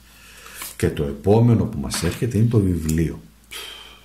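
A playing card is laid down softly on a table.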